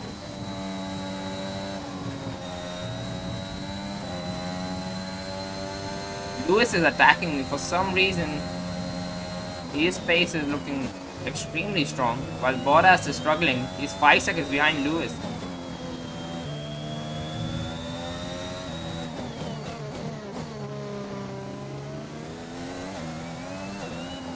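A racing car engine whines at high revs, rising and falling as the car speeds up and brakes.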